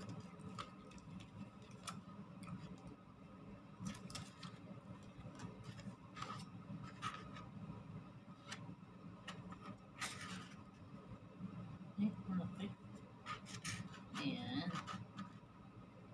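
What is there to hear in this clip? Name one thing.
Cutlery clinks and scrapes against a plate close by.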